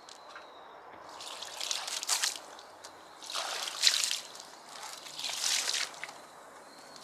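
Water splashes as it is poured from a jug onto concrete.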